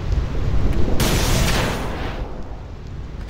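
Lightning strikes with a loud crackling burst.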